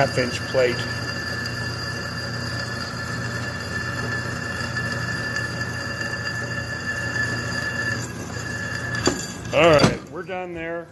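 A drill press whirs steadily as it bores into metal.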